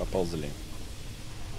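A young man speaks briefly and close to a microphone.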